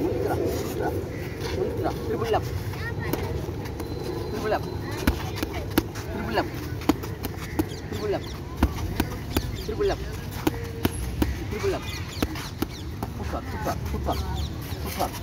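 Boxing gloves thud against punch mitts in quick bursts.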